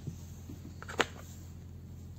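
A pomegranate cracks as it is pulled apart by hand.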